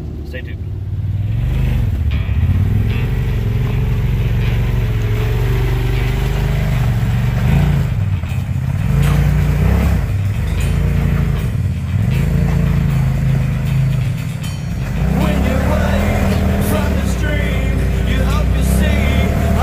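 An off-road vehicle's engine revs hard as it climbs over rocks.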